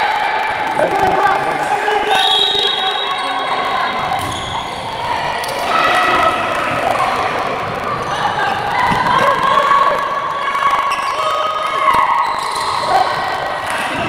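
A handball thumps as it bounces on the floor.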